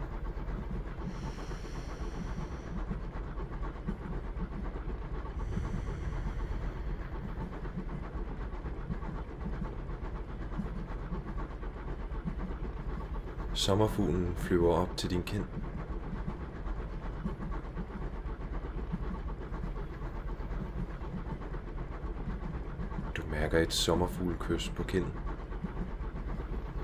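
A train rolls on rails through a tunnel.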